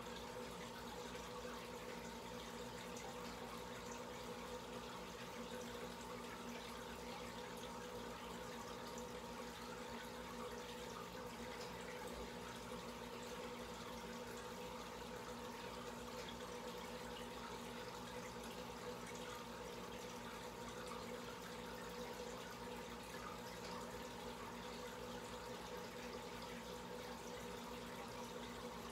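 Air bubbles stream and fizz through aquarium water.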